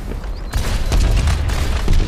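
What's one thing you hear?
A loud explosion booms and crackles.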